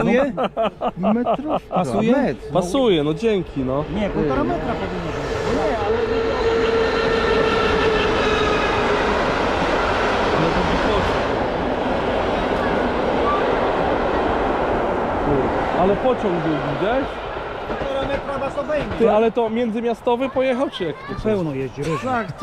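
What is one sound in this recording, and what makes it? A man speaks close by, in a casual, chatty way.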